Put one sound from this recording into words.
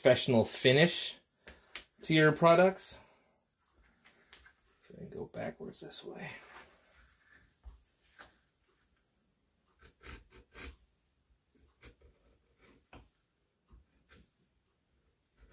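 A small knife scrapes and shaves wood in short strokes.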